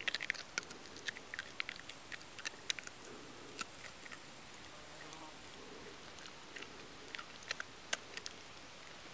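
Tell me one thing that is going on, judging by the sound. A fox chews and smacks its lips close by.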